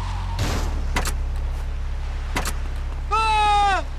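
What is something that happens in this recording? Footsteps slap on a hard surface.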